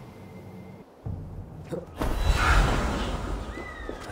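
A puff of smoke bursts with a sudden loud whoosh.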